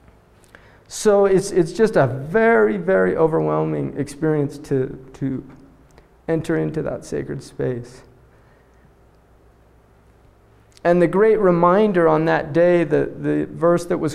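A man speaks calmly into a close microphone, pausing between phrases.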